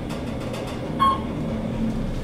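An elevator chime dings once.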